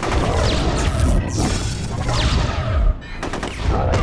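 An energy beam fires with a rushing blast.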